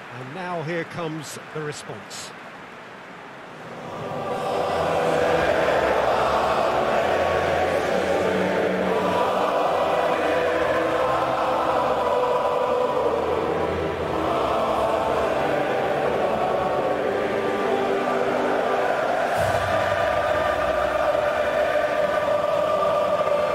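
A large crowd cheers and sings in a vast stadium.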